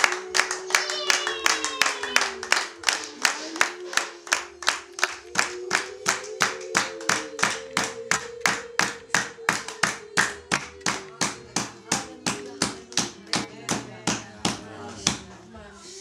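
Women sing together.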